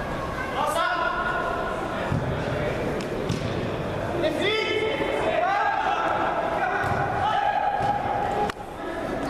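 Young men shout to each other across a large echoing hall.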